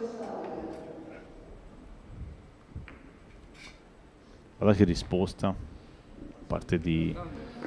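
Billiard balls click against each other on a table.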